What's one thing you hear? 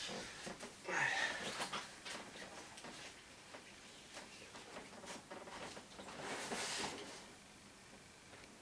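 An inflatable vinyl toy rustles and squeaks as a man handles it.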